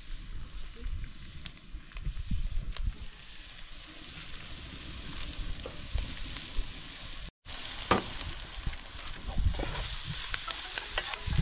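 A wood fire crackles under a pot.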